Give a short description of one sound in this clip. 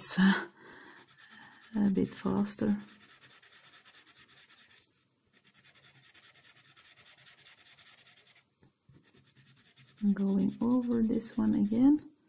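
A pencil scratches rapidly back and forth on paper.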